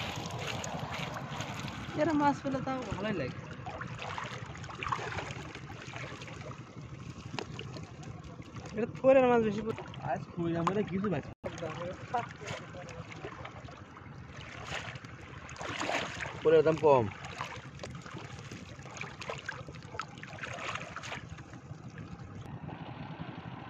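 Water sloshes around a man wading.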